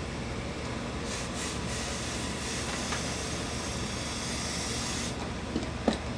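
A steam iron hisses in short bursts.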